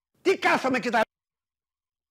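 An elderly man speaks loudly and with animation into a microphone.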